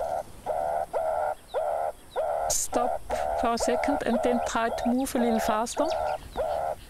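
A woman speaks calmly into a handheld radio close by.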